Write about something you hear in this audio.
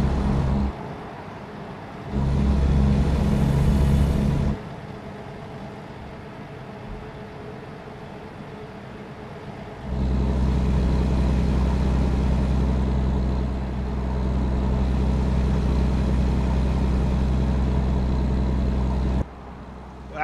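A truck engine hums steadily inside the cab.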